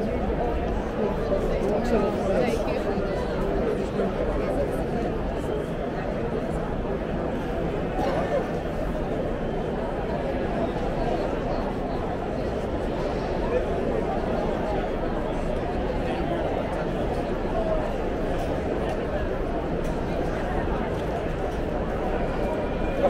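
A large crowd chatters all around outdoors.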